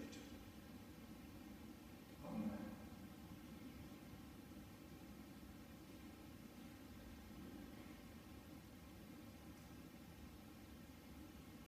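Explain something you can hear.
An elderly man speaks slowly and calmly in a large echoing hall.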